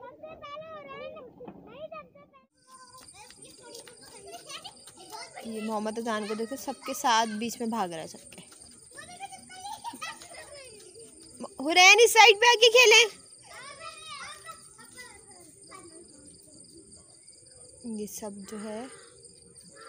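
Children shout and squeal excitedly nearby.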